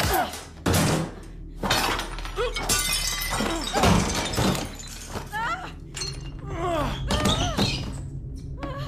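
A body thuds onto the floor.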